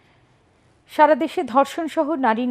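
A woman reads out the news clearly into a close microphone.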